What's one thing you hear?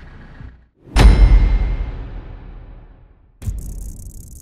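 A deep booming impact hits and slowly rings out.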